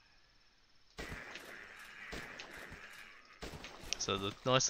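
Rifles fire in quick, repeated shots.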